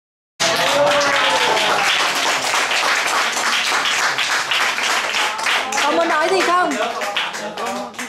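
A crowd of people claps their hands in rhythm.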